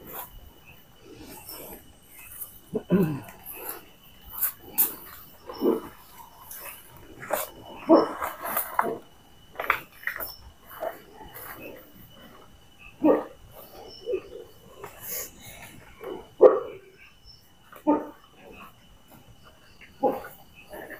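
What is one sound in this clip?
A marker scratches and squeaks on paper.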